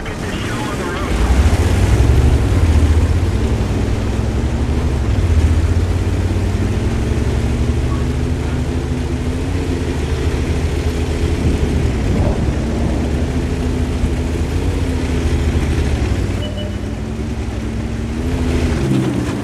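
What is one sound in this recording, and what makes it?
A tank engine rumbles low and steady as the tank drives over snow.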